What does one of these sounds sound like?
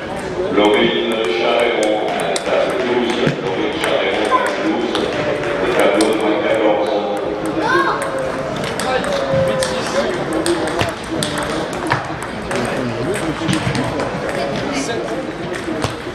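Table tennis balls click sharply on paddles and tables in a large echoing hall.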